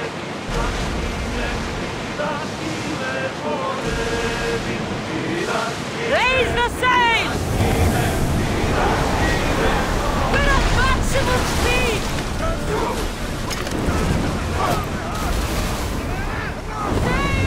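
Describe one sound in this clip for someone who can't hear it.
Waves crash and splash around a sailing ship.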